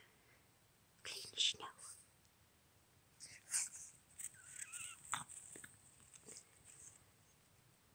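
A small dog's paws crunch and scamper through snow.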